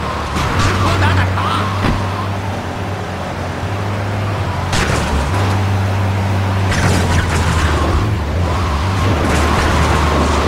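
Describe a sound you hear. A car crashes into a truck with a metal bang.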